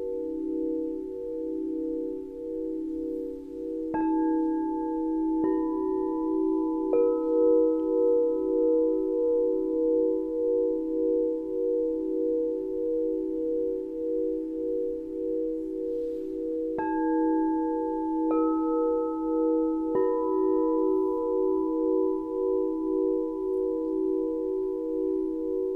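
Crystal singing bowls ring with a steady, pulsing hum.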